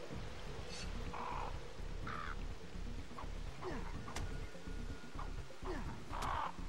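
A sword swooshes through the air in quick swings.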